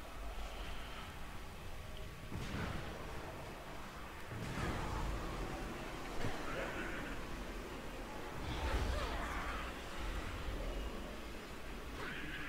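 Magical spell sounds shimmer and whoosh.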